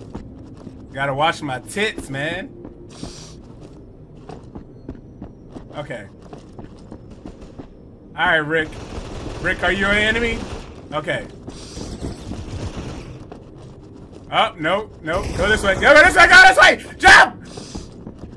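A young man talks with animation close to a microphone, in bursts.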